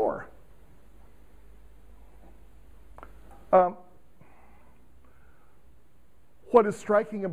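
An elderly man speaks in short bursts in a quiet room, heard through a clip-on microphone.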